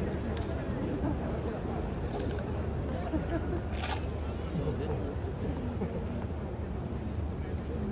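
A large stadium crowd murmurs quietly outdoors.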